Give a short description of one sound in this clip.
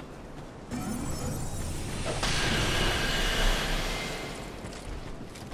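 A heavy weapon swings through the air with a whoosh.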